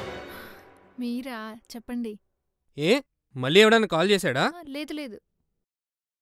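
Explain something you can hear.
A young woman speaks softly and cheerfully into a telephone.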